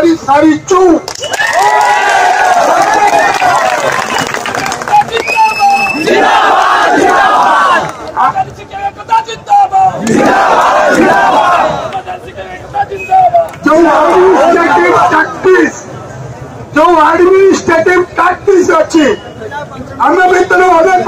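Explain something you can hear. A large crowd outdoors shouts slogans in unison.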